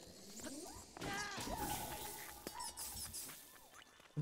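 A burst of smoke explodes with a soft whoosh.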